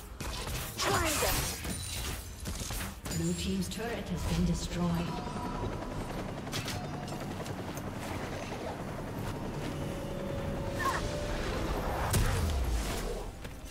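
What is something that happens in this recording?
Magic spells whoosh and crackle amid clashing battle effects.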